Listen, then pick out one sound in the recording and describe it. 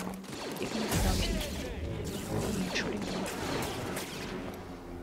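Blaster shots zap and ricochet.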